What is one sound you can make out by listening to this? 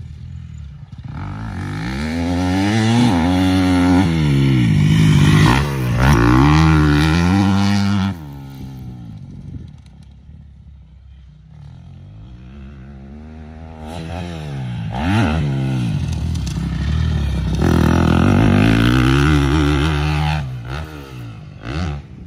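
A dirt bike engine revs up and down as it races past close by.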